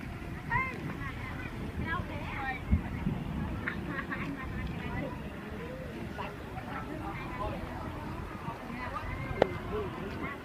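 Children splash in the water.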